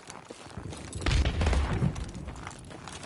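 Gunfire bursts loudly from a rifle.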